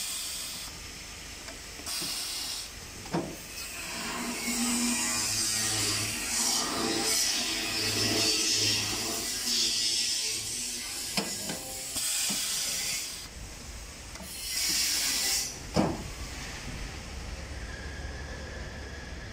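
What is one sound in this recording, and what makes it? A metal sheet rattles and scrapes as it is handled.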